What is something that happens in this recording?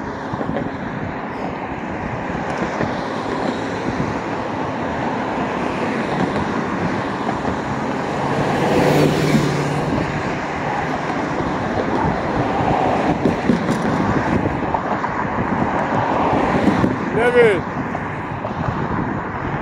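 Traffic rolls past close by outdoors.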